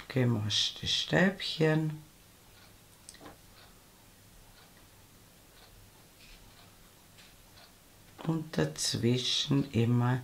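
A crochet hook softly rustles and ticks through yarn.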